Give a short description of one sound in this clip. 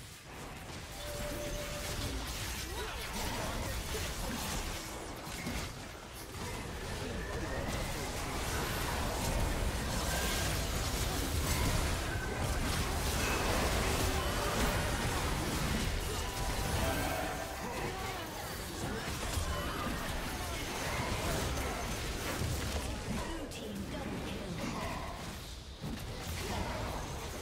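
Spell blasts and magic effects crackle and whoosh in a busy fight.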